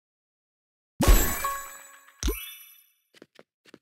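A bright magical chime rings out and fades.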